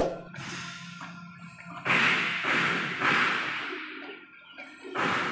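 A hand tool scrapes hard across a rubber belt in rough, repeated strokes.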